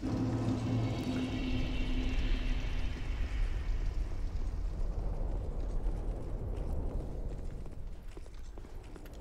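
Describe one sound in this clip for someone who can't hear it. A low, steady rumbling drone echoes in a large hall and slowly fades.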